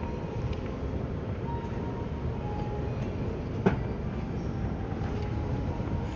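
A moving walkway hums and rumbles steadily.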